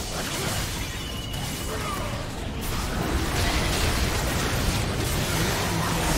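Video game battle effects clash, with spell blasts and hits layered over one another.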